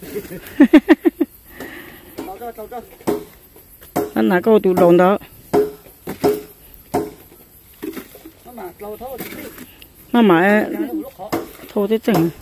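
A shovel scrapes and knocks against wet concrete.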